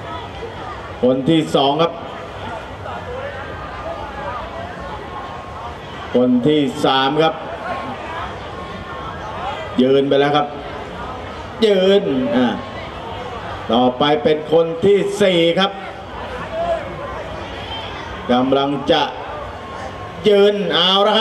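A man shouts loudly in short bursts.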